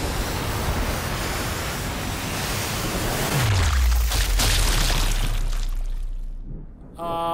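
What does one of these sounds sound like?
A loud rushing, roaring noise fills the air and then dies away.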